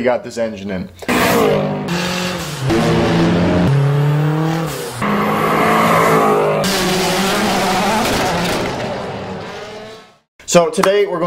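A car engine roars and revs as the car drives past.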